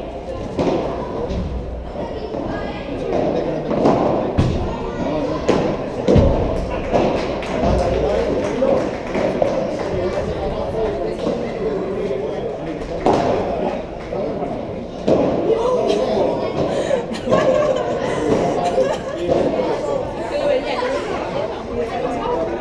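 Young boys talk and call out, echoing in a large hall.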